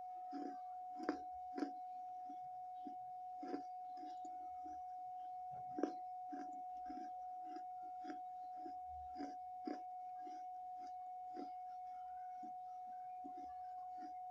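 A person chews crunchy snacks loudly, close to a microphone.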